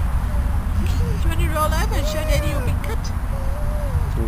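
A woman speaks softly and gently nearby.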